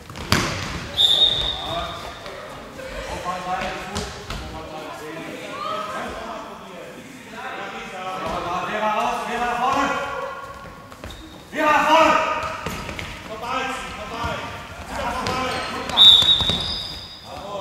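A referee's whistle blows sharply, echoing in a large hall.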